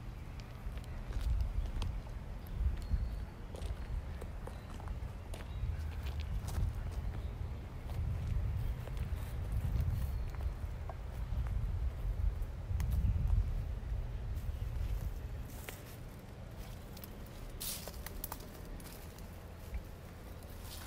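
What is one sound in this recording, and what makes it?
Leaves rustle in the wind.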